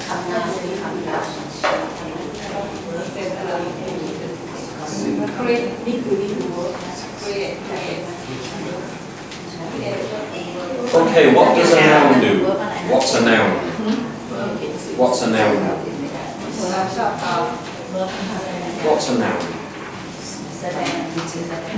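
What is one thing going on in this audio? A man speaks in a lecturing tone.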